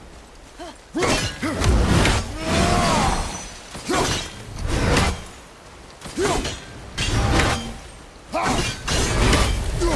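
An axe strikes with heavy, crunching thuds.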